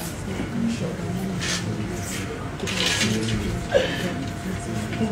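A woman speaks in a shaky, tearful voice close to a microphone.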